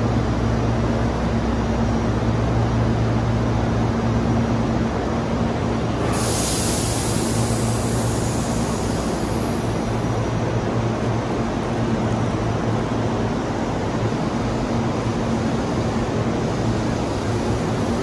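An electric train hums steadily while standing at a platform.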